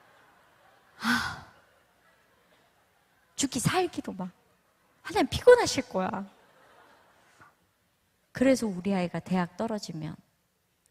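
A woman speaks expressively into a microphone, in short phrases with pauses.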